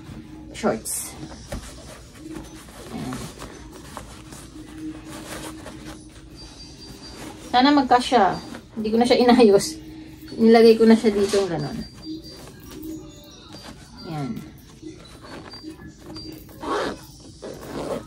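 Clothes rustle as they are folded and packed.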